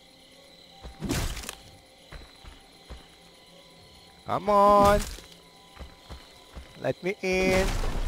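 An axe thuds hard into a wooden door.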